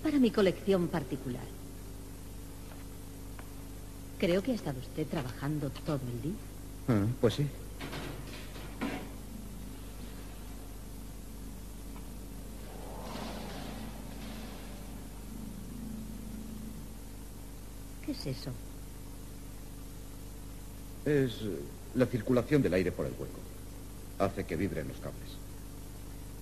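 A woman speaks in a low, tense voice close by.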